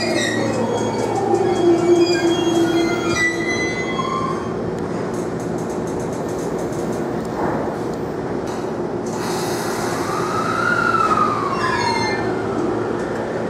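A train rolls slowly past with a steady rumble of wheels on the rails.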